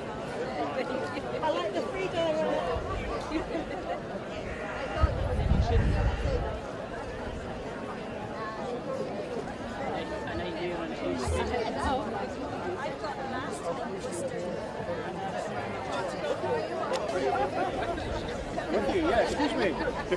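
A woman speaks close into a microphone, calmly.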